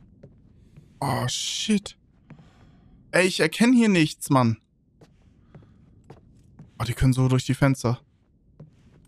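A man speaks close to a microphone in short, animated bursts.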